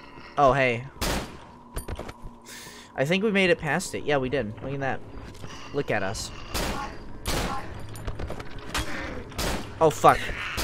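A pistol fires in sharp bangs.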